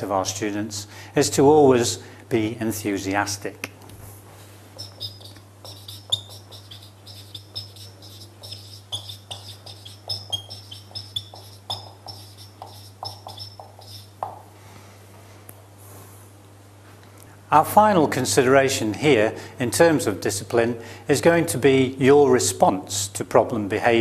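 A middle-aged man speaks calmly and clearly into a clip-on microphone.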